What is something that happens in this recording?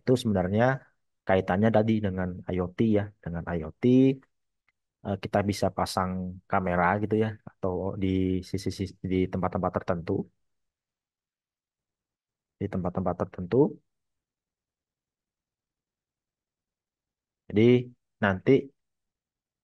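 A young man speaks calmly through a headset microphone over an online call.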